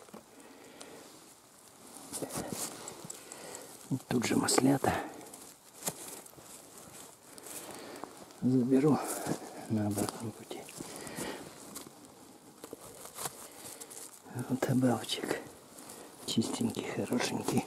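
Footsteps crunch on dry needles and leaves.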